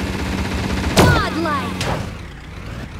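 A vehicle crashes with a sudden loud thud.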